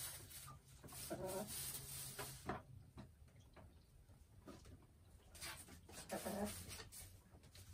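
A hen clucks softly close by.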